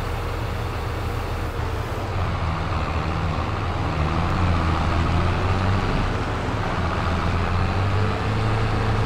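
A tractor engine hums steadily with a low drone.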